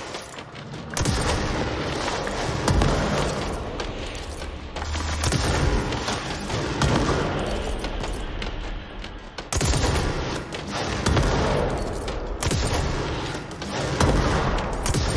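Heavy blasts boom and rumble.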